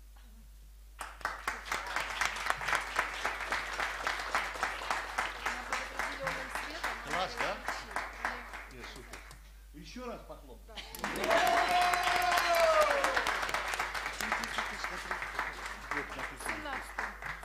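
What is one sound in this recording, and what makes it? A crowd applauds loudly with rapid clapping.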